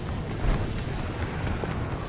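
Footsteps run over rough ground.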